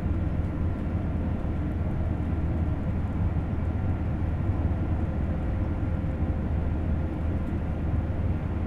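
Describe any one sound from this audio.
A train rumbles steadily along the tracks at speed, heard from inside the cab.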